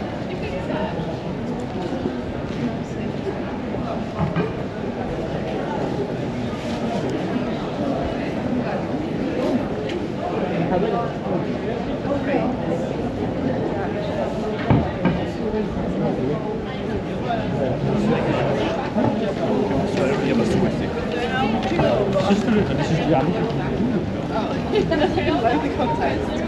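A crowd of people chatter in the background outdoors.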